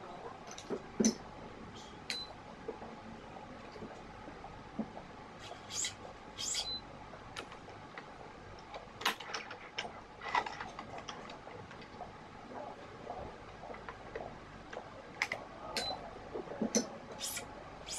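Strings snap and click against the racket frame and machine clamps.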